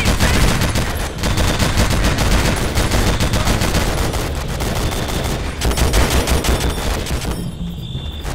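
A heavy machine gun fires rapid, loud bursts.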